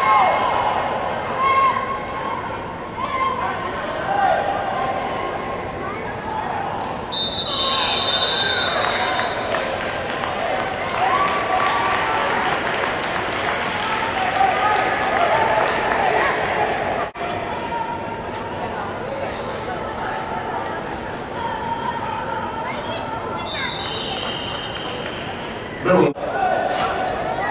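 Young players shout on an open field.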